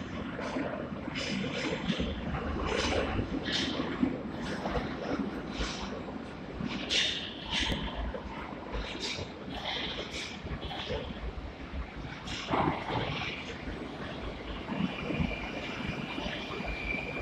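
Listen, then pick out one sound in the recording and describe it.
An escalator hums and rattles steadily.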